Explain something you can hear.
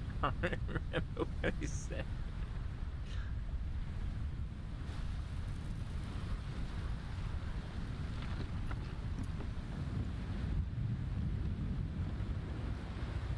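Waves surge and wash steadily against a sailing ship at sea.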